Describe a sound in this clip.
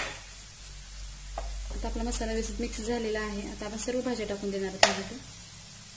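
A metal spatula scrapes and taps against a frying pan.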